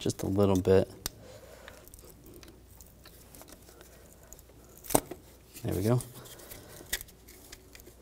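A plastic connector clicks sharply a few times.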